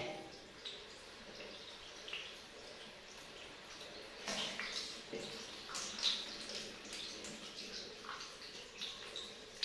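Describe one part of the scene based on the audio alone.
Water trickles from a tap into a metal tub.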